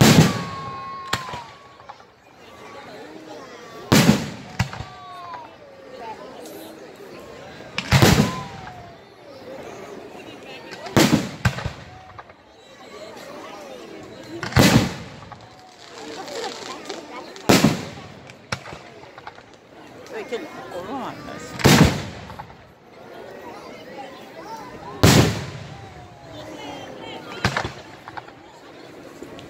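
Fireworks crackle and fizzle after bursting.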